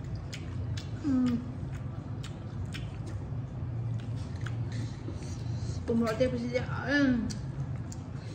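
A young woman hums and murmurs with pleasure between bites.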